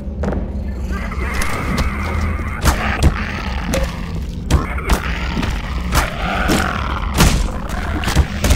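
A zombie groans and snarls.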